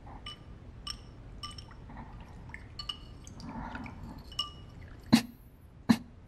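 A spoon clinks against a porcelain bowl.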